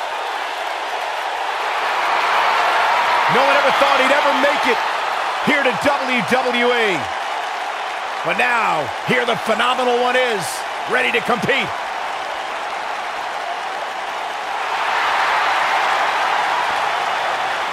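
A large crowd cheers and roars in a big echoing arena.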